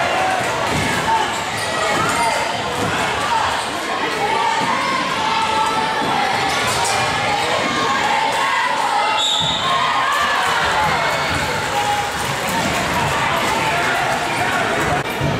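Young women shout and call out to each other across the gym.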